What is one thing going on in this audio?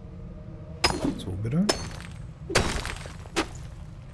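A pickaxe strikes rock with sharp knocks.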